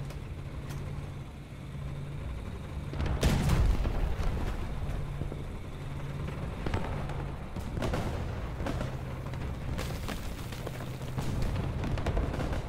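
A tank engine rumbles and idles steadily.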